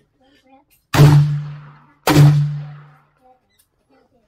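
A rifle fires two loud shots that boom and echo under a roof.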